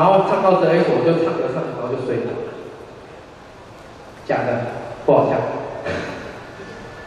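A young man shouts into a microphone through loud speakers.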